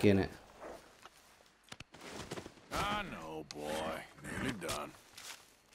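Boots rustle through tall grass.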